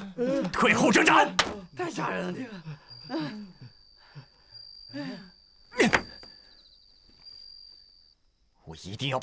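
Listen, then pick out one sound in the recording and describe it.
A man speaks tensely in a low, firm voice.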